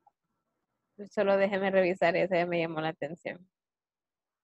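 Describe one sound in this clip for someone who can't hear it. A young woman speaks calmly through an online call.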